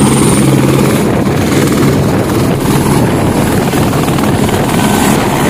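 A helicopter's rotor thuds as it lifts off.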